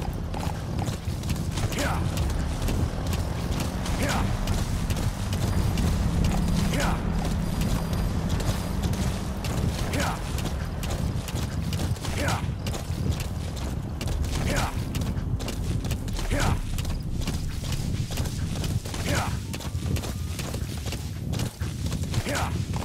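Horse hooves pound steadily on dirt and stone at a gallop.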